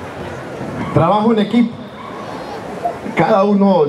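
A man speaks forcefully through a microphone over loudspeakers outdoors.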